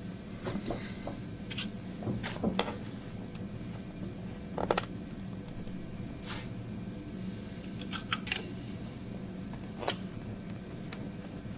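Metal tools clink and knock against an engine.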